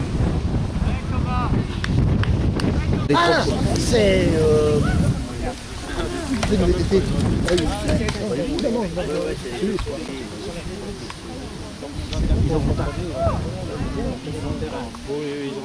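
Men and women talk among themselves nearby.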